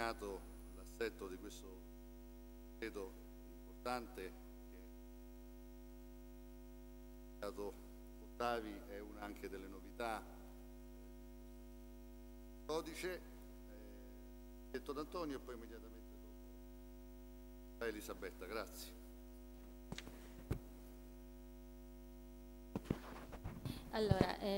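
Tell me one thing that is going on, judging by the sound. A middle-aged man speaks calmly into a microphone in a large echoing hall, with pauses.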